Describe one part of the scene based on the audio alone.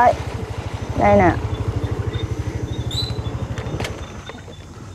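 A motorcycle engine idles with a low, steady putter, then cuts off.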